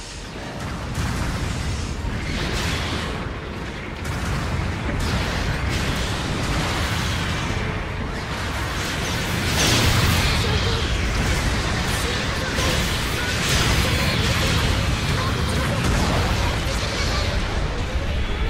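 Heavy gunfire and explosions boom and crackle.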